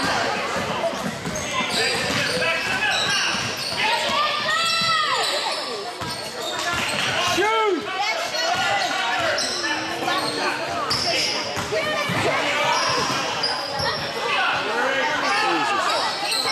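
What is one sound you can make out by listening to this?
Spectators chatter and call out close by.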